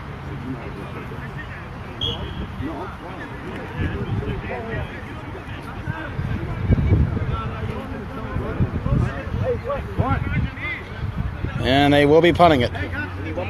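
Several young men talk and call out together outdoors, close by.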